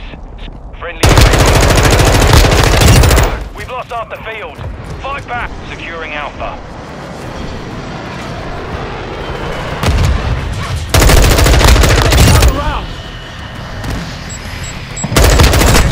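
A rifle fires in loud rapid bursts.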